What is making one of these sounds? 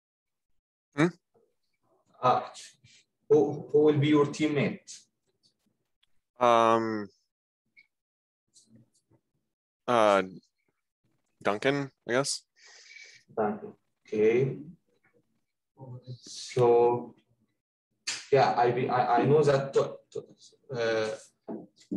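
A young man speaks calmly, pausing between phrases.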